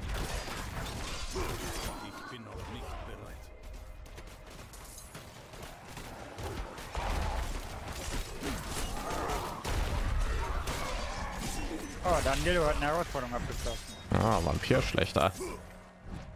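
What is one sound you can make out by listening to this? Monsters growl and shriek.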